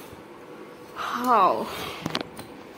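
A man sobs and wails close by.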